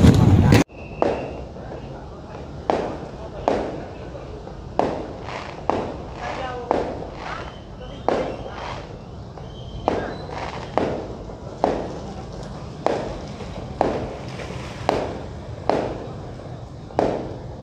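Fireworks bang and pop at a distance, one after another.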